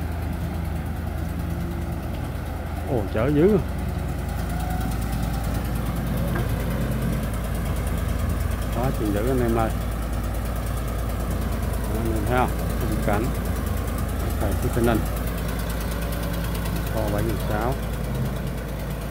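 Heavy diesel engines rumble steadily nearby.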